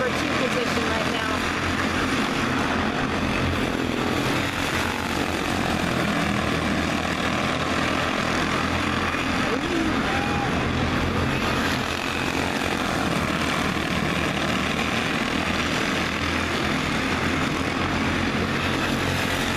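Kart engines buzz and whine as karts race around a track.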